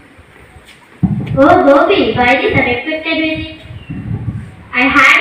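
A second teenage girl answers through a microphone and loudspeaker.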